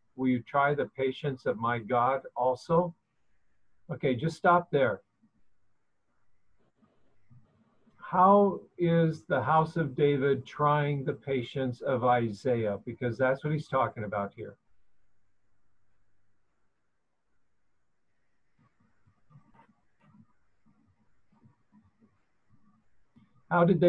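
An older man speaks calmly into a microphone, as if over an online call.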